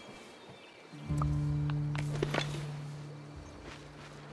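A video game tool hums and chimes as a rock breaks.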